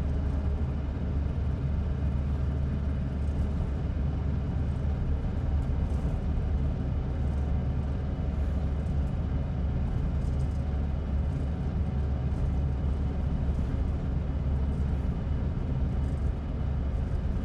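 A bus engine rumbles low and steady while the bus drives along.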